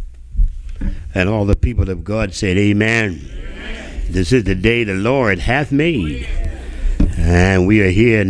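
An elderly man speaks through a microphone with slow, solemn emphasis in an echoing hall.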